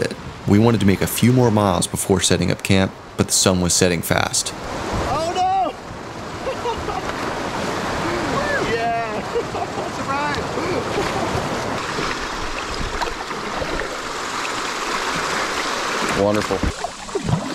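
Water rushes and churns over river rapids.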